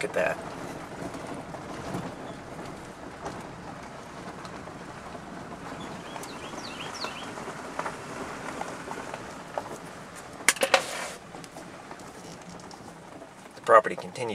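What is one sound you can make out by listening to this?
A vehicle drives slowly along a bumpy dirt track, its body rattling now and then.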